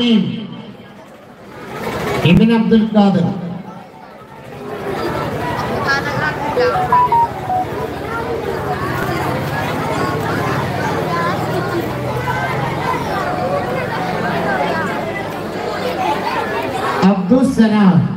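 A man speaks loudly through a microphone and loudspeakers.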